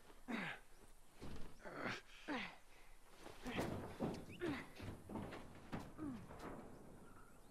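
A girl grunts and strains with effort.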